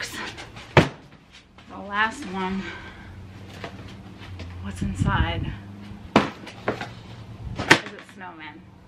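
A plastic lid clicks and thuds as it is unlatched and lifted.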